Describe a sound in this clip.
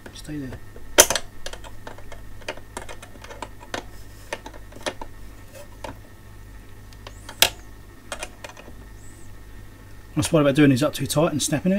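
Metal tools click and tap against small parts.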